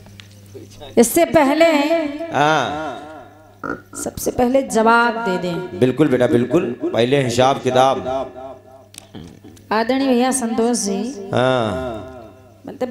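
A middle-aged woman sings loudly through a microphone and loudspeakers.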